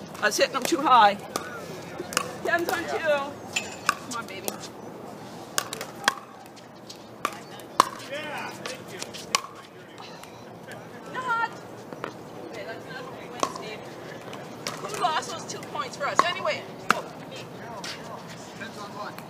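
Pickleball paddles smack a plastic ball in sharp pops outdoors.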